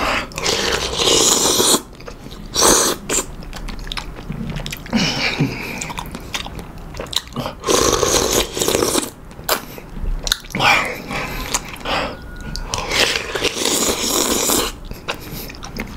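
A man chews wetly.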